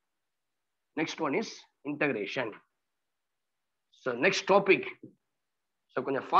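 A man speaks calmly through a close headset microphone.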